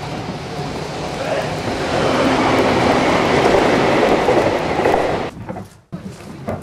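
A train rumbles past, rising loud and then cutting off.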